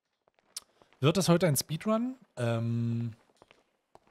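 A man speaks animatedly and close into a microphone, drawing out a long sound.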